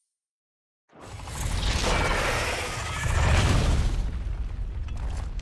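A huge beast roars loudly.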